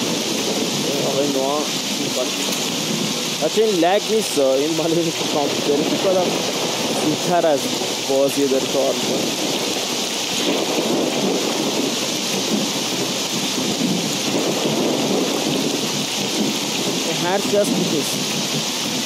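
A young man talks with animation into a close headset microphone.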